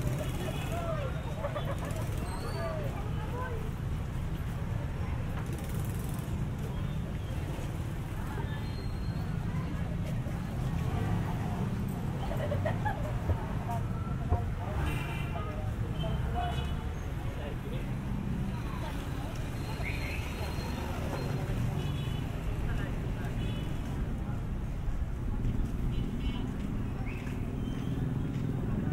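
Street traffic rumbles steadily outdoors.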